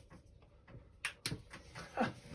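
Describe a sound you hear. A small switch clicks.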